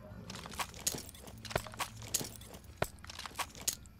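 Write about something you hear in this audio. A gun is put away with metallic clicks and rattles.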